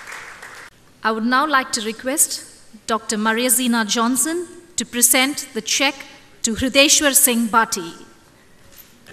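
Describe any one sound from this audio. A young woman speaks clearly into a microphone over a loudspeaker.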